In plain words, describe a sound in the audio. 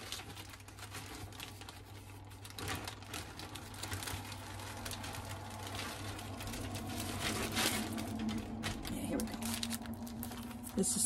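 Stiff fabric rustles as it is handled.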